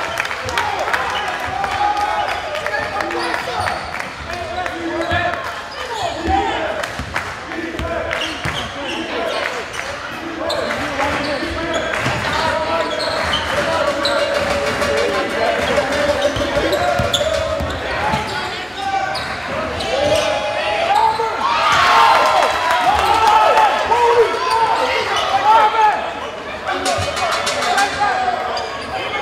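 A crowd in a large echoing gym chatters and cheers.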